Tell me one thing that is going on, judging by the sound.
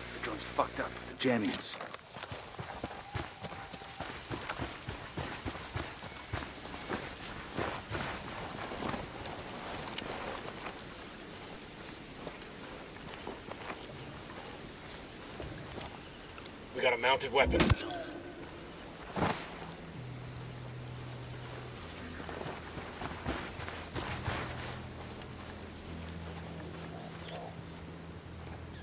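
Footsteps crunch through grass and dirt.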